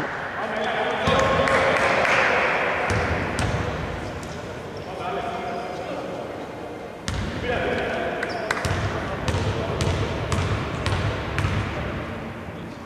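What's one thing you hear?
Men shout to each other across the court.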